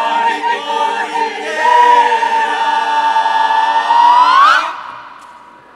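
A choir sings loudly in a large hall, ending with a rising swoop.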